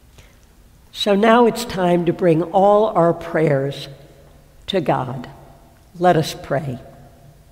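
A woman reads out a prayer through a microphone in a large echoing hall.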